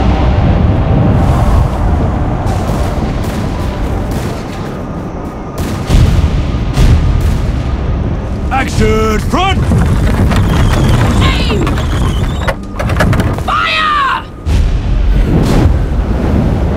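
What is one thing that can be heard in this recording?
Cannons boom and explosions rumble in the distance.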